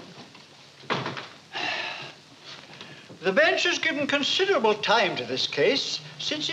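An elderly man speaks loudly and firmly.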